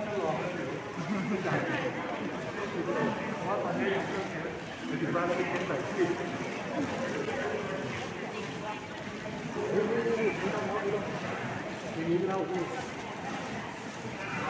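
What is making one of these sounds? A crowd of men and women murmur and talk nearby in a busy room.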